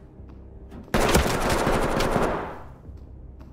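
A loud blast booms and rumbles away.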